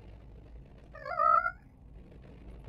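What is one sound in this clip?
A small cartoon dragon lets out a short growl.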